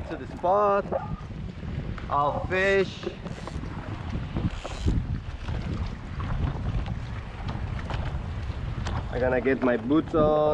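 Shallow water splashes against a board.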